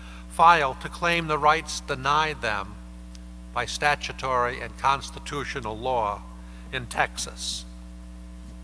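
An older man speaks calmly into a microphone in a large hall.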